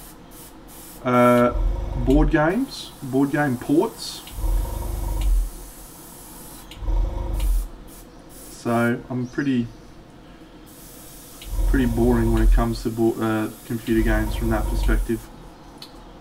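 A man talks calmly and casually into a close microphone.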